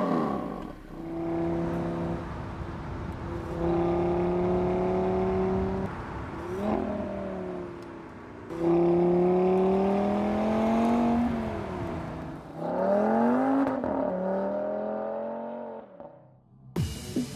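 A car engine roars as the car accelerates, climbing in pitch and dropping with each gear change.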